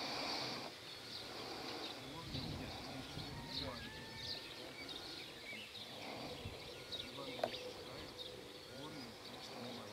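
A man chants prayers aloud outdoors.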